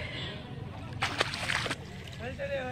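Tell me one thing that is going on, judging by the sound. Water splashes as a foot kicks it.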